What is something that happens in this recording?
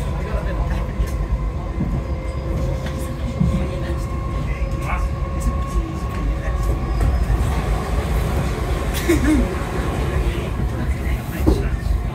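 A train carriage rattles and creaks now and then.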